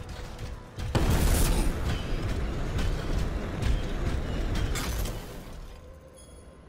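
A heavy armoured suit rumbles and clanks as it moves.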